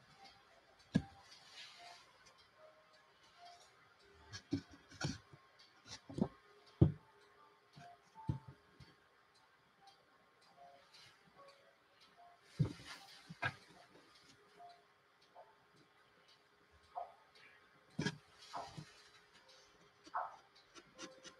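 Small taps and knocks sound against a board now and then.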